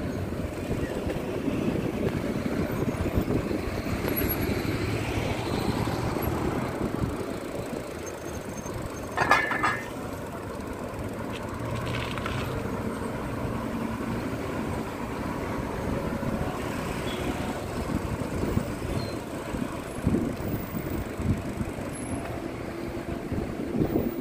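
A car engine hums steadily from inside a moving car.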